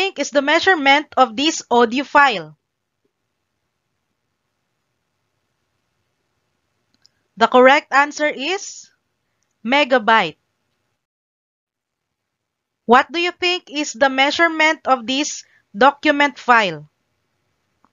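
A woman speaks calmly and clearly into a close microphone, in short bursts with pauses.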